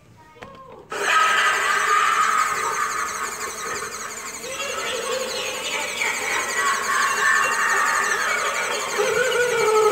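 An animatronic figure growls and cackles loudly in a raspy, distorted voice through a small speaker.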